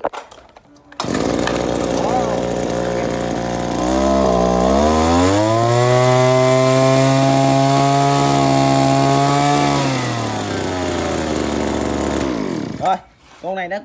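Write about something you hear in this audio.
A small two-stroke engine runs loudly, revs up high, then slows and cuts out.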